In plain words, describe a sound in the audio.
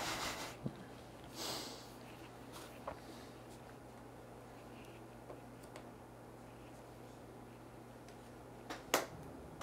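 Game pieces click and tap on a table.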